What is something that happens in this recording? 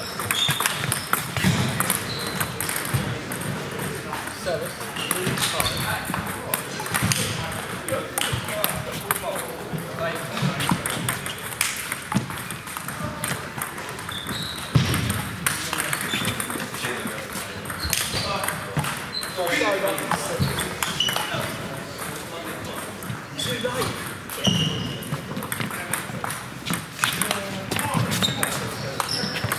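A table tennis ball clicks back and forth on bats and table in a large echoing hall.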